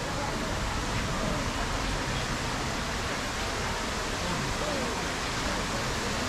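A fountain splashes steadily.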